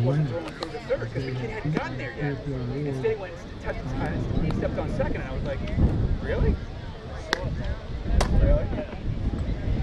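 A crowd of spectators chatters outdoors at a distance.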